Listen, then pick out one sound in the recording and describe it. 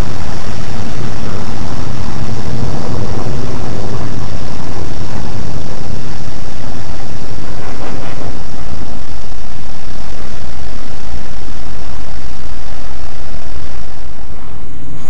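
Jet engines roar loudly as fighter planes take off.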